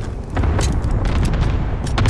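A rifle magazine clacks as it is reloaded.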